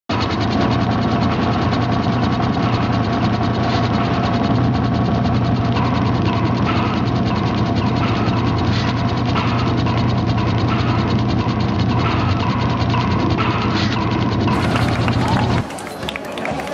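A threshing machine rumbles steadily.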